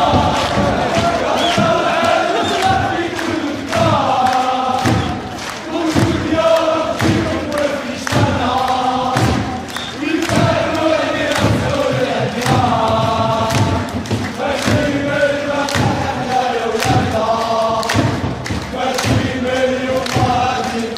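A large stadium crowd chants loudly in unison.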